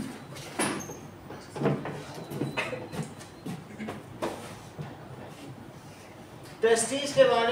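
A middle-aged man speaks steadily, lecturing nearby.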